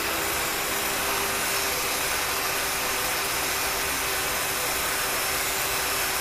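A hair dryer blows with a steady whoosh.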